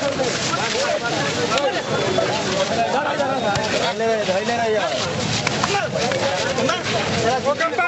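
Hands slap a man repeatedly.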